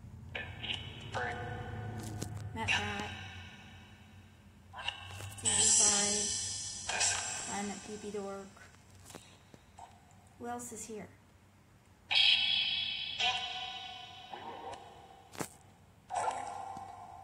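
A phone's small speaker plays bursts of electronic music and sound effects.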